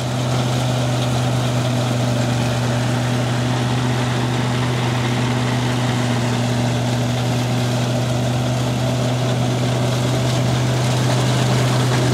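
A tractor engine runs with a steady, loud chugging drone.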